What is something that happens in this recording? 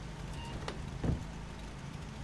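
A door closes with a knock.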